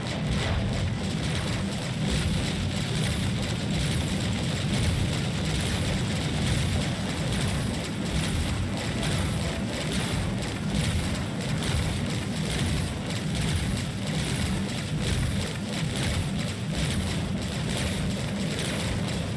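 A spacecraft engine rumbles steadily.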